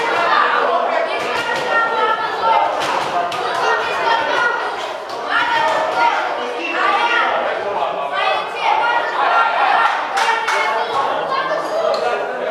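Boxing gloves thud sharply as punches land.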